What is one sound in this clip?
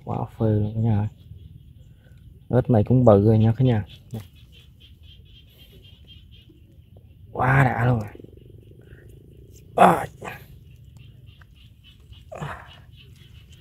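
Dry grass and twigs rustle as a hand grabs a toad.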